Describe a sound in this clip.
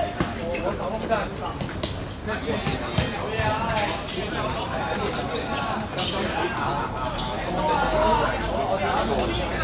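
Young men shout and call to each other across an open court.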